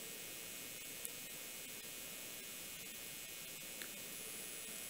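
A button on a small remote control clicks.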